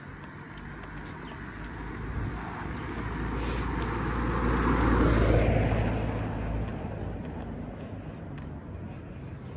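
A car approaches and drives past, its engine rising and then fading.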